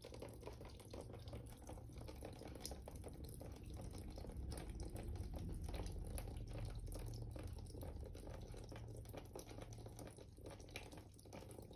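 Water trickles steadily onto wet sand.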